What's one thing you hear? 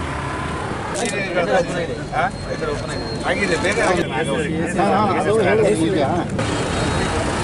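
A crowd of men talk at once outdoors, close by.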